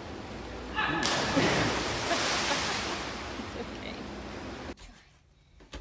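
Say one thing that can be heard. A diver splashes loudly into an indoor pool.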